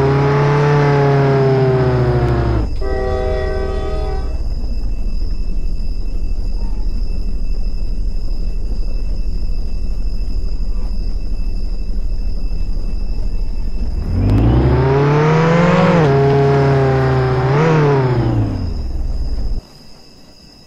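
A car engine revs up and down, then hums low and steadily.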